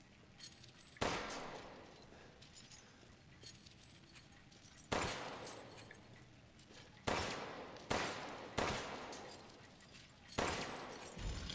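Pistol shots ring out one at a time, echoing in a stone room.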